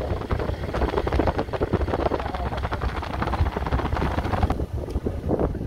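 A motorcycle engine rumbles steadily while riding along a road.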